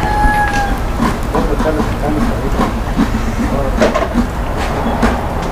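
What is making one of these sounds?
Metal tools clank now and then.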